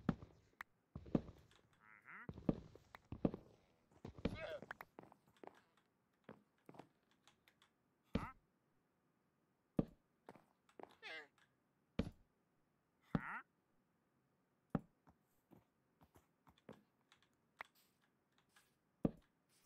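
Blocks knock softly as they are broken and placed.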